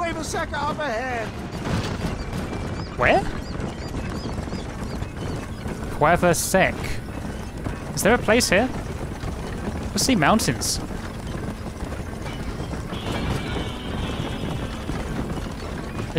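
Wooden wagon wheels rumble and creak over rough ground.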